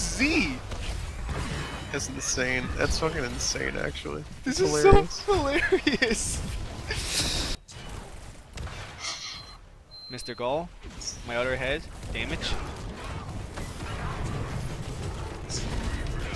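Video game combat effects zap and clash.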